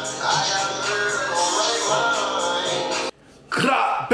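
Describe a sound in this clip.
A young man sings rhythmically close by.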